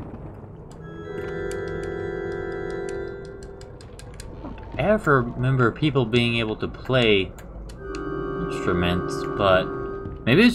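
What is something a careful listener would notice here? A pipe organ plays sustained chords.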